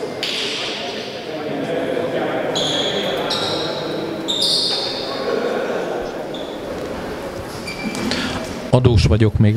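A man talks to a group of players in a large echoing hall.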